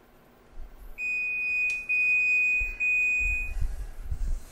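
An electronic oven beeps several times in high, steady tones.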